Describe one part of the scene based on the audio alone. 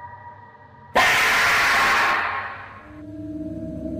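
A man shouts loudly and abruptly.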